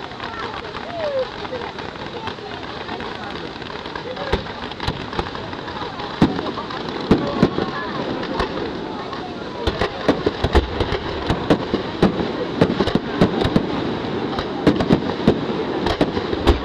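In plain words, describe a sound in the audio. Fountain fireworks hiss and fizz steadily.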